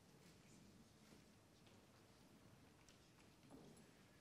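An elderly man speaks softly near a microphone.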